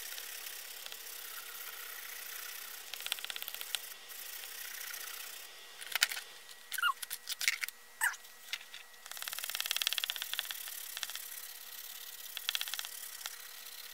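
A coloured pencil scratches back and forth across paper.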